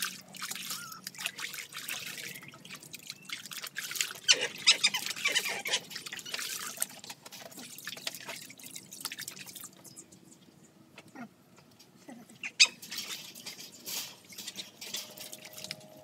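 Water splashes as a dog is scrubbed in a tub.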